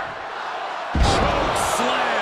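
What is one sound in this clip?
A heavy body slams onto a ring mat with a loud thud.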